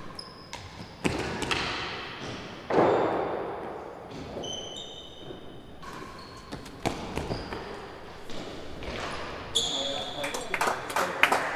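A racket strikes a ball with sharp cracks that echo around a large hall.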